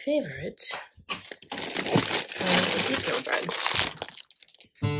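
A plastic bread bag crinkles.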